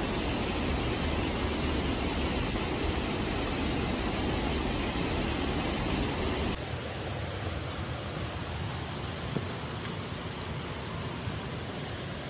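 Footsteps thud on wooden steps.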